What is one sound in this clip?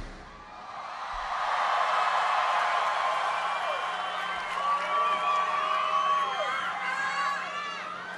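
A large outdoor crowd cheers and roars.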